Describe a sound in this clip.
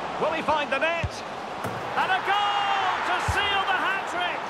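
A football is struck with a thud.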